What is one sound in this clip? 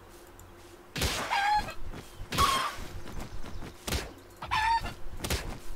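A small cartoon bird creature squawks and chirps.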